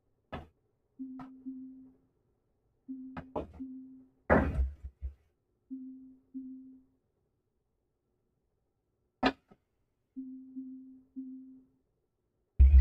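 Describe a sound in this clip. Short synthetic tones sound as a video game places building blocks.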